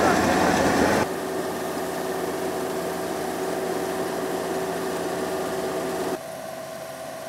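A harvesting machine's engine hums steadily nearby.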